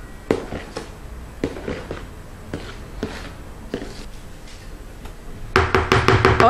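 A spoon scrapes and taps against a bowl while stirring thick batter.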